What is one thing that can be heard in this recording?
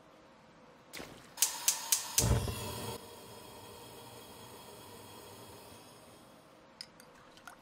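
A gas flame hisses softly.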